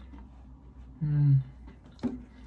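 A man hums a short, pleased sound close by.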